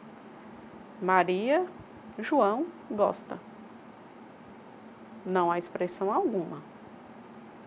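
A young woman speaks calmly in short phrases, close to a microphone.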